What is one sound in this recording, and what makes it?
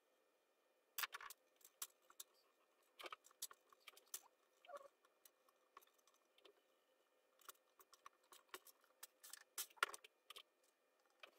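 Plastic parts click and clatter softly as they are handled.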